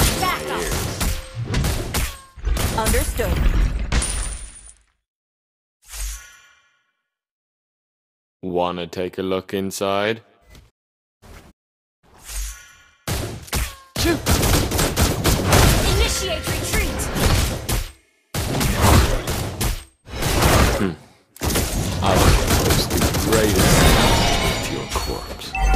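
Game spell effects blast and crackle in bursts.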